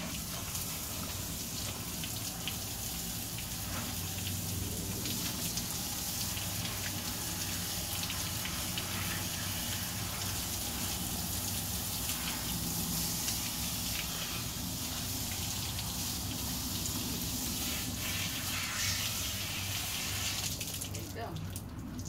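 Water hisses steadily from a hose spraying onto a dog.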